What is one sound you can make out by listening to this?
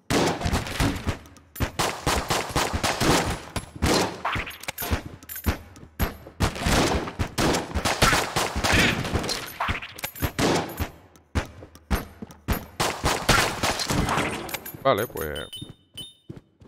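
Guns fire in rapid, repeated shots.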